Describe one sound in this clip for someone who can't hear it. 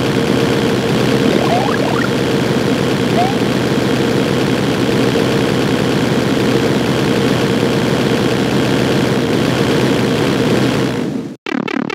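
Bouncy electronic game music plays steadily.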